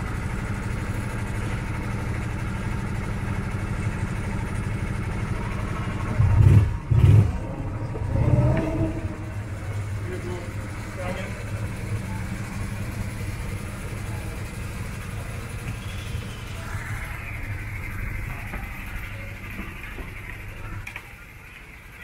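A small kart engine hums steadily close by.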